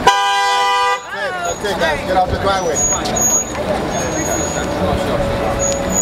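Several men shout and call out close by.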